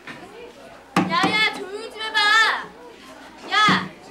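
A woman speaks loudly and firmly to a room.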